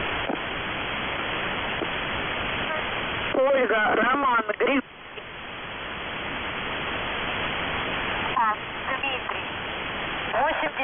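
Shortwave radio static hisses steadily through a receiver.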